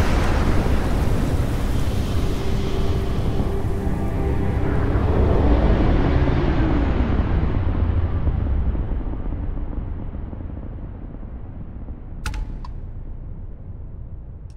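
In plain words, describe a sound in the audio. A spaceship engine rumbles deeply and slowly fades.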